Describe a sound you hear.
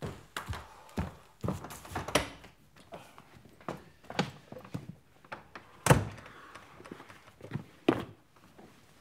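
Metal clicks and knocks sound as a man works a door lock.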